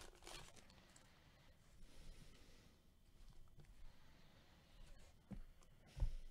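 Cards slide against each other.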